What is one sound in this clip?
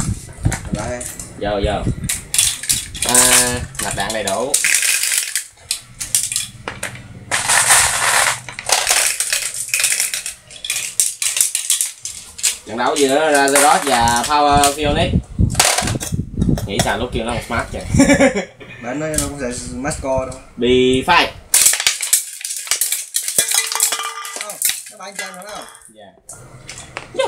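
Small plastic toy pieces clatter and knock on a wooden board.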